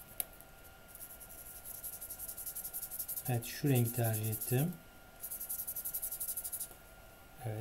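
A felt-tip marker scratches quickly across paper.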